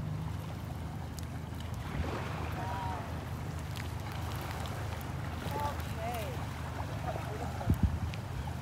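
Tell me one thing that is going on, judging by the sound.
A boat engine hums steadily in the distance.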